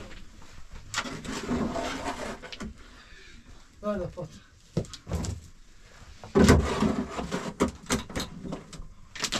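Hands scrape and pat loose soil.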